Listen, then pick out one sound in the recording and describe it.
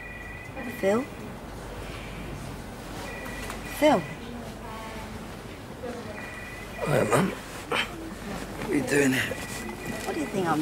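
An older woman speaks softly nearby.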